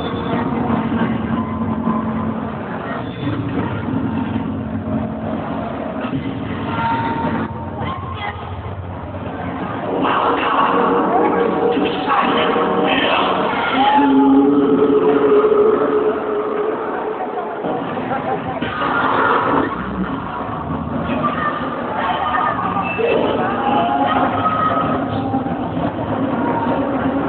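Music plays loudly through loudspeakers in a large echoing hall.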